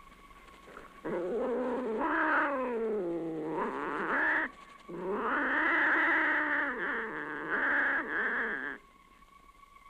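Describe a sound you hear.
A young woman wails and sobs in distress nearby.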